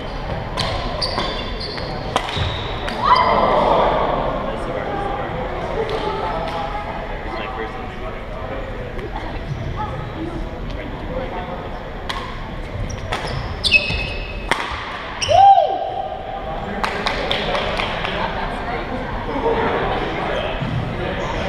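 Voices of young people chatter in a large echoing hall.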